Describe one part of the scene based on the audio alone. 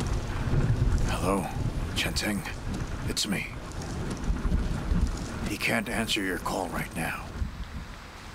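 A middle-aged man speaks calmly into a phone.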